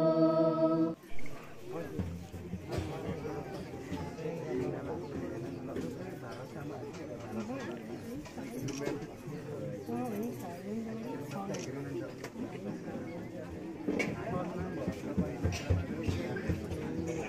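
Several women and men chatter nearby.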